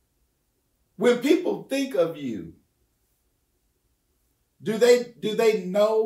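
An older man speaks calmly and close into a microphone, with pauses.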